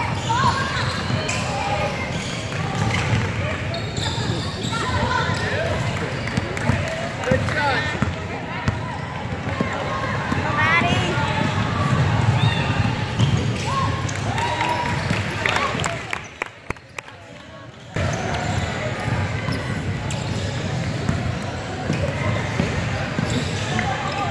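A crowd of spectators talks and calls out in a large echoing gym.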